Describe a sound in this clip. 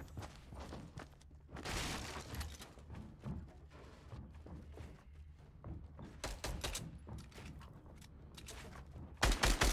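Wooden walls and floors snap into place with quick clacks.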